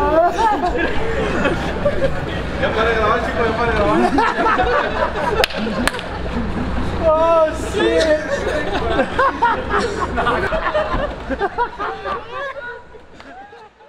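Several men talk and laugh excitedly nearby.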